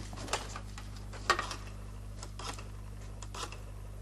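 A telephone receiver is picked up with a clatter.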